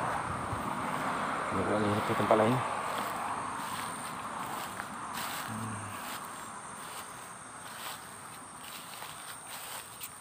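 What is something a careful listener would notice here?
Footsteps rustle through grass and dry leaves.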